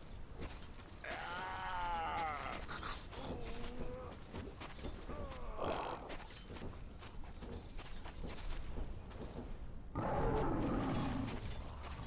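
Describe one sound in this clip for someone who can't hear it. A winged creature shrieks overhead.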